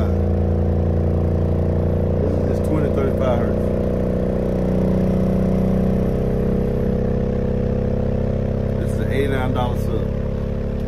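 A subwoofer plays a steady, deep droning tone up close.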